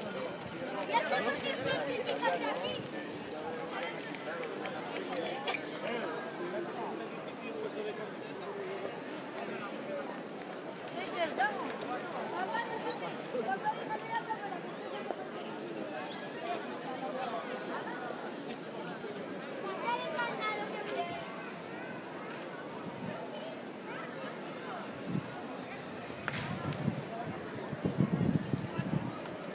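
A crowd of men and women chatters at a distance outdoors.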